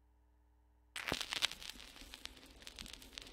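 A needle crackles and hisses in a spinning record's groove.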